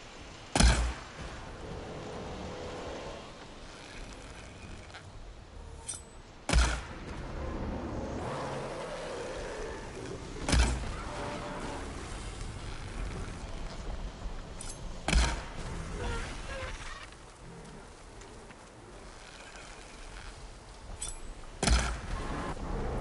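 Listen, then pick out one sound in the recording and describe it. Heavy booming impacts strike every few seconds.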